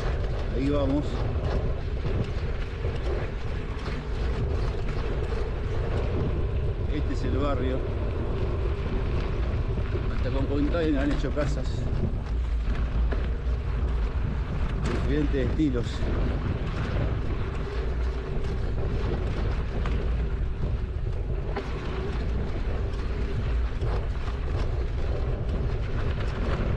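Tyres rumble steadily over a dirt road.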